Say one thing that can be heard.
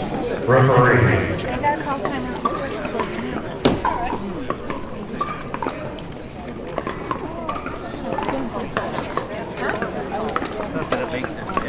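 Several adults chat outdoors at a distance.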